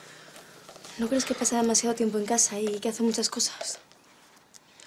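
A young woman speaks earnestly nearby.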